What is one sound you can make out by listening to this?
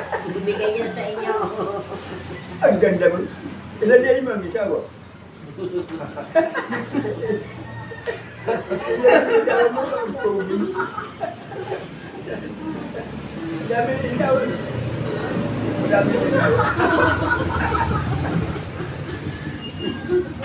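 A middle-aged man talks and laughs nearby.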